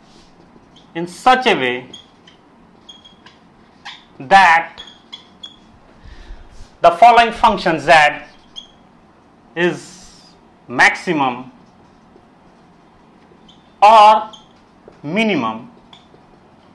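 A man speaks calmly and clearly nearby, in short phrases with pauses.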